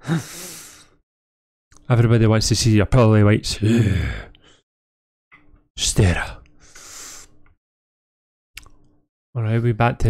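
A young man talks with animation into a headset microphone, heard close.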